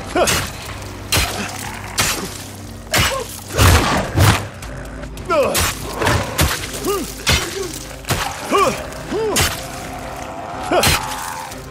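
Heavy blows thud into a body again and again.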